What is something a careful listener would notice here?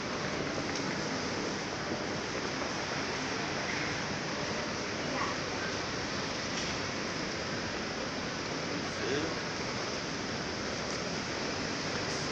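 Footsteps tap on the pavement.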